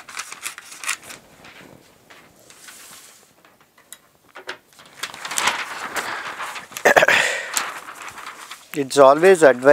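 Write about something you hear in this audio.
Stiff paper rustles and crinkles.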